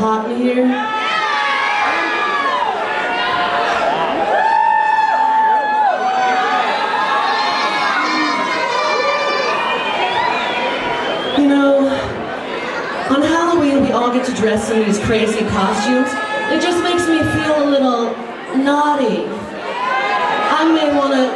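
A woman talks with animation into a microphone, heard over loudspeakers.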